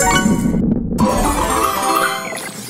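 A cheerful fanfare plays at the finish.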